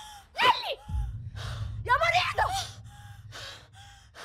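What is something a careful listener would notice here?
A young woman shouts in distress close by.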